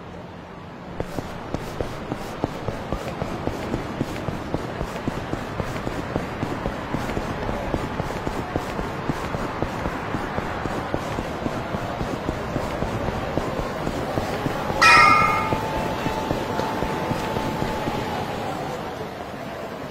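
Footsteps patter quickly on pavement as a man runs.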